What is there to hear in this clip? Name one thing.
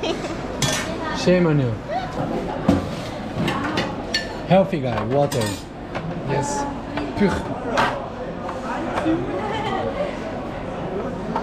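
A plastic tray slides and knocks along a counter.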